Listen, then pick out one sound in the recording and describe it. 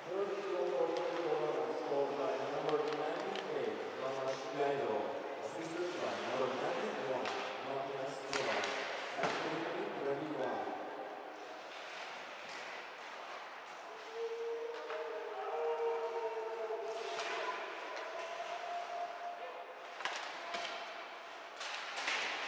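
Skates scrape and carve across ice.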